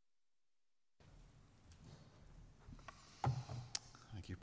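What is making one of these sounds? A second man speaks quietly into a microphone.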